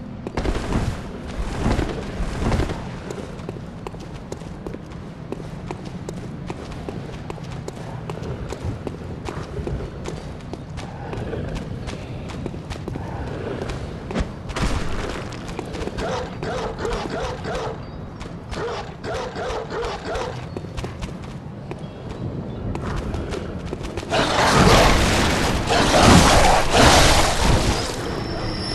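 Footsteps run across stone paving.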